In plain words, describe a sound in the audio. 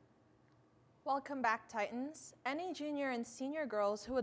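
A young woman reads out into a close microphone.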